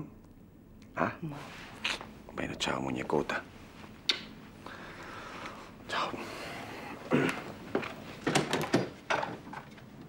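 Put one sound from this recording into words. A woman speaks quietly up close.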